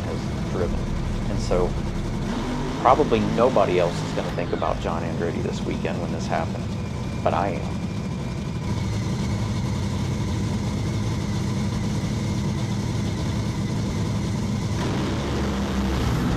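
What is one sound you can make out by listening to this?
An engine idles with a steady, deep rumble close by.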